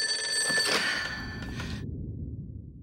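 A woman exclaims loudly.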